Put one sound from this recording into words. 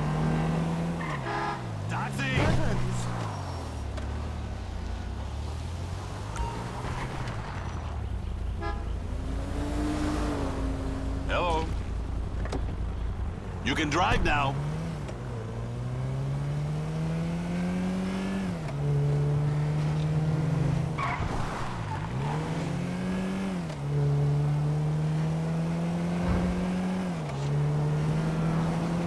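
A car engine hums and revs up and down as the car drives.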